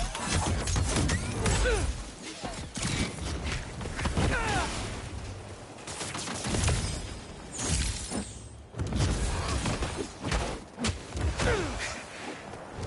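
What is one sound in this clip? Punches and blows land with heavy thuds.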